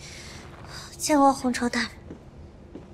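A young man asks a question softly, heard up close.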